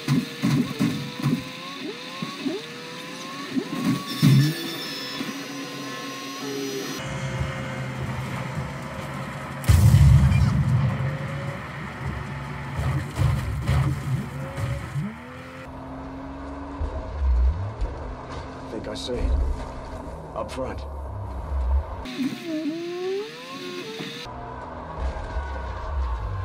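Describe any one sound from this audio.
A car engine roars while driving over sand.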